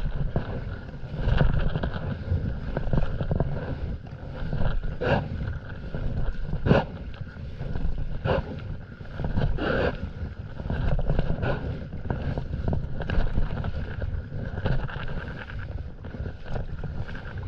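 A paddle blade digs into water and splashes with each stroke.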